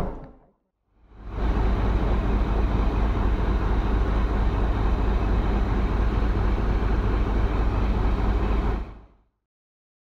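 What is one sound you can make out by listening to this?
A parked bus engine idles with a low rumble.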